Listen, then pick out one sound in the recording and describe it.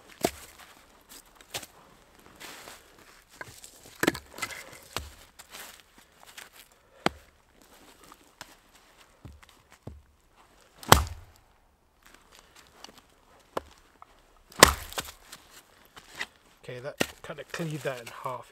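Split wood pieces clatter as they are dropped and stacked.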